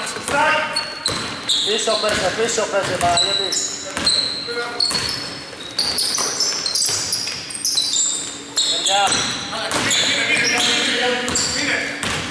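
A basketball bounces on a hardwood court in a large echoing hall.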